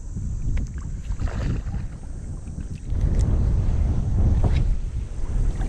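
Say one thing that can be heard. Shallow water splashes as a fish thrashes at the surface.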